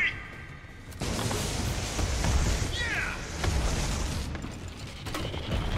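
Grenades explode with deep, heavy booms.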